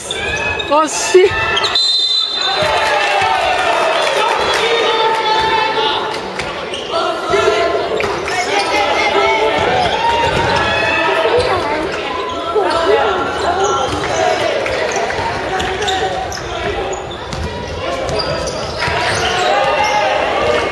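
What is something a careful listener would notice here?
A crowd of young spectators shouts and cheers in a large echoing hall.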